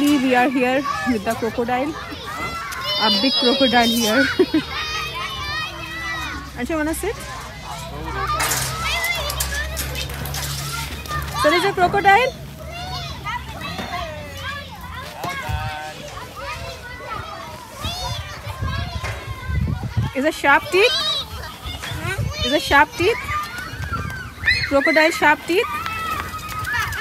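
Children shout and chatter nearby outdoors.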